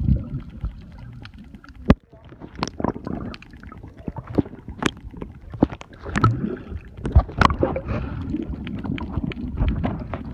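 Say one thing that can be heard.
Water splashes and bubbles close by as a swimmer kicks.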